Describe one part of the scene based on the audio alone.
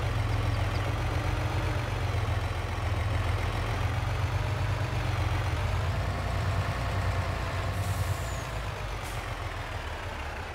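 A truck engine rumbles low and then fades.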